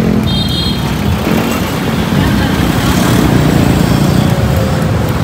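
Motorcycle engines rumble and buzz as they pass close by in busy traffic.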